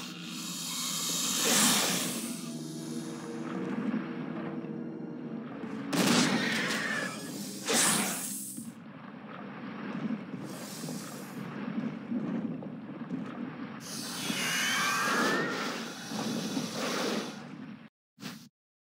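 A huge snake hisses loudly.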